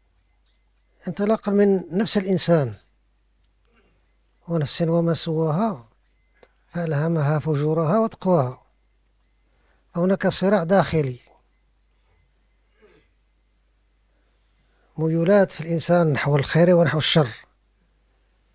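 An elderly man speaks calmly into a microphone in short phrases with pauses.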